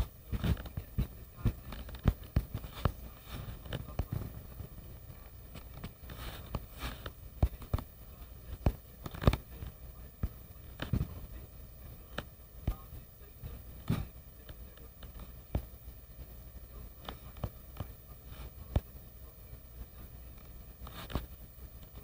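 Fingers tap quickly on a touchscreen.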